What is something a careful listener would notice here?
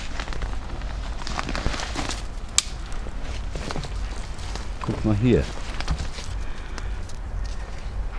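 Thin twigs rustle and snap as a hand handles a branch.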